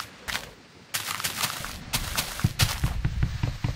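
An axe chops at wood in a video game.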